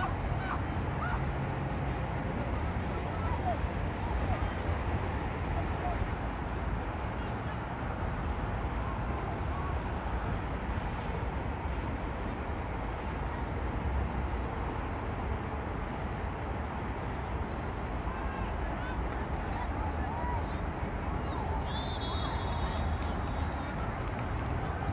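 Wind rumbles steadily across an open outdoor space.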